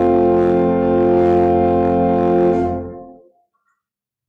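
An organ holds a steady chord in a reverberant hall.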